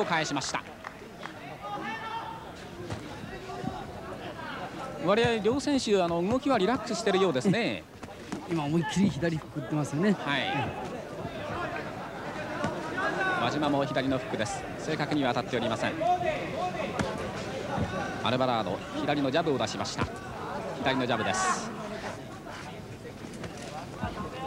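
A crowd murmurs and cheers around a ring.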